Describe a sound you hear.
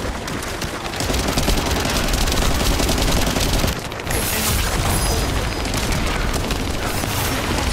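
Heavy explosions boom and rumble deeply.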